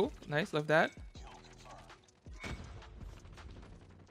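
Gunshots go off in quick bursts.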